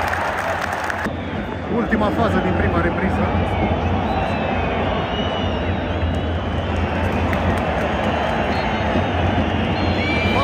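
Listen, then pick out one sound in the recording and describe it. A large stadium crowd roars and chants loudly all around.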